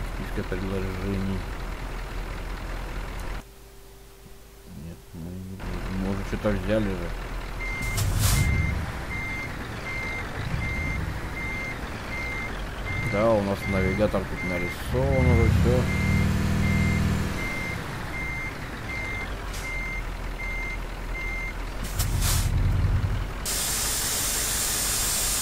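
A truck engine idles and rumbles low.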